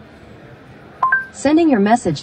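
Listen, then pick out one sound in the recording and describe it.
A car's dashboard system gives a short two-note chime.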